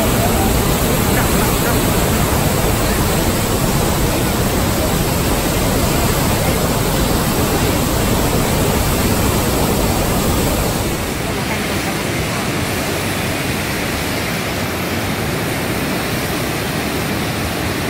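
Floodwater roars as it pours through open barrage gates and churns below.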